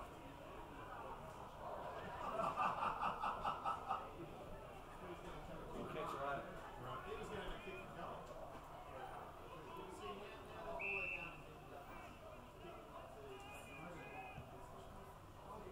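Young men shout and call out across an open field in the distance.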